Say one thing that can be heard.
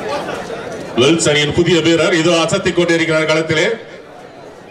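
A young man chants rapidly and continuously.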